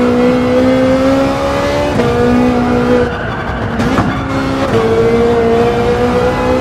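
A race car engine roars at high revs, its pitch dropping sharply with each gear change.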